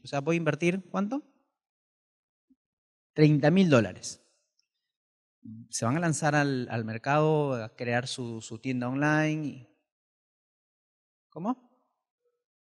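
A man speaks with animation into a microphone, heard through a loudspeaker, with pauses between phrases.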